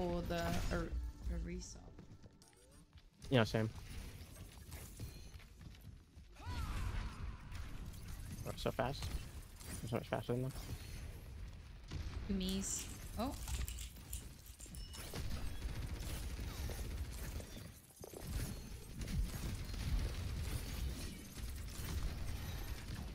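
Gunfire and blasts from a video game crackle.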